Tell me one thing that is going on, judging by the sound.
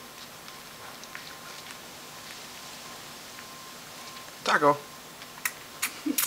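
A kitten scratches and bats at a rubber sandal on a rough mat.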